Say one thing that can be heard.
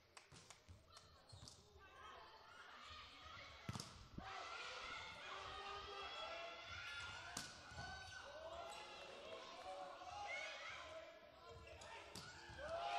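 A volleyball is struck with sharp smacks in an echoing hall.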